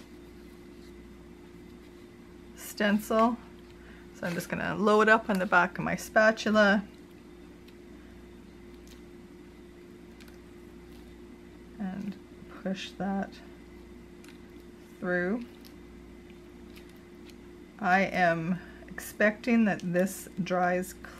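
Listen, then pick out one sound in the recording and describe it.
A small plastic knife softly scrapes paste across paper.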